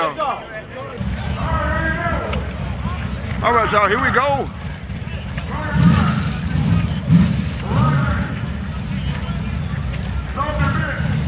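A race car engine idles with a deep, rough rumble.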